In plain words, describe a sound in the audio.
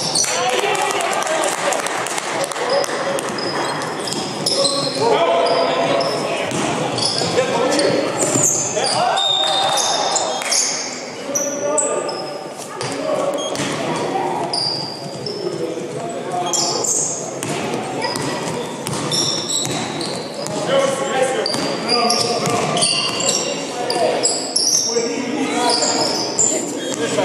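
Sneakers squeak sharply on a hard gym floor.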